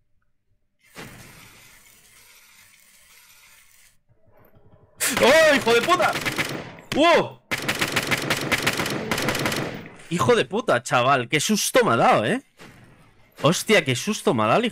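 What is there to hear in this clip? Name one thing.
Laser guns fire in a rapid, buzzing stream.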